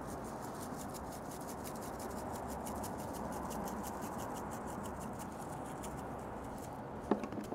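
Seasoning patters lightly onto meat.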